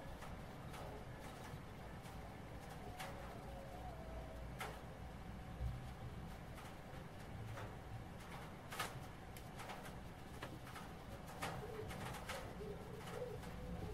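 A small brush taps and dabs softly on a plastic model.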